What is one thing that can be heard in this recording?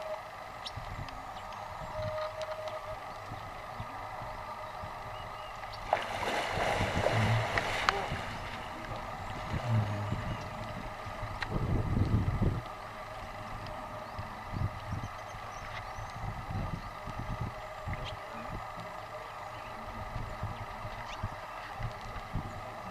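Water laps and ripples gently as a crocodile swims.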